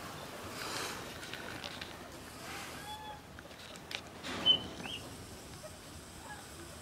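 A fox's paws patter and rustle on loose wood shavings.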